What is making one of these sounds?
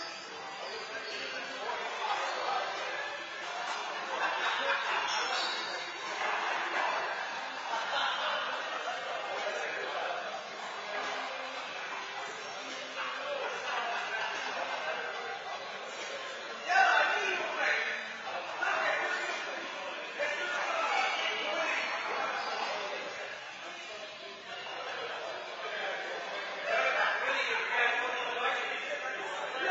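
Men talk with each other in an echoing indoor court.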